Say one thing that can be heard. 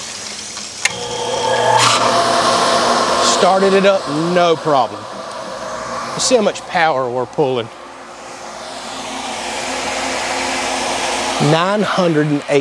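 An electric water pump hums steadily.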